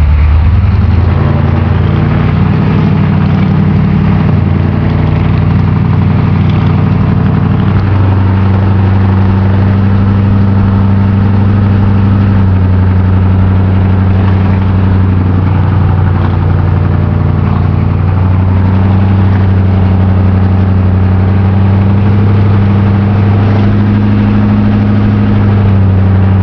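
A car engine hums loudly and steadily, shifting pitch as the car drives on.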